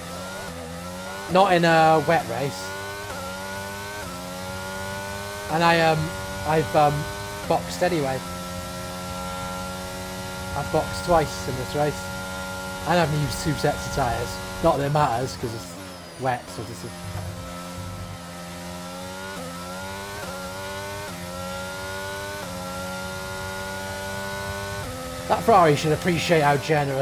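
A racing car engine whines, revving up and down through the gears.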